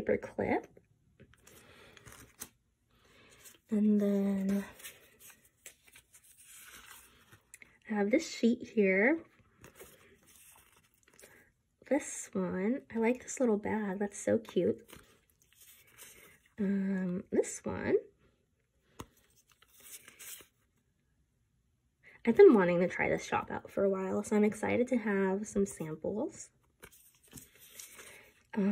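Stiff paper cards rustle and tap softly as hands shuffle them.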